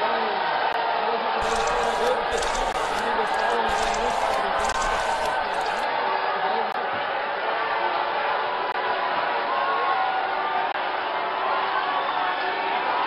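A large outdoor crowd boos and shouts loudly.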